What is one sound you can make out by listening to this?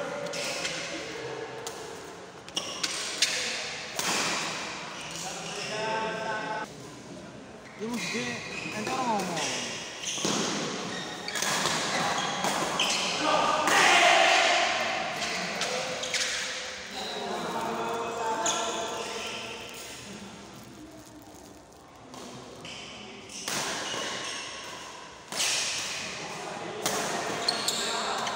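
Rackets hit a shuttlecock with sharp pops.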